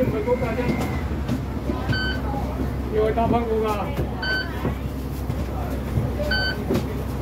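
A bus engine rumbles low and steadily.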